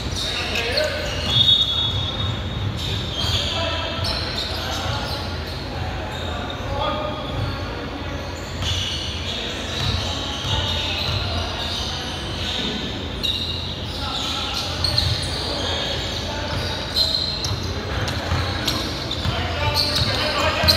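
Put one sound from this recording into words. Sneakers squeak on a hardwood court in a large echoing gym.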